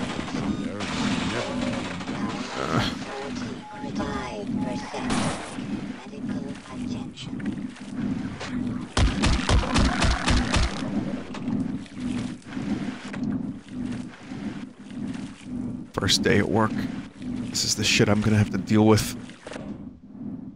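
Footsteps splash through shallow water in an echoing tunnel.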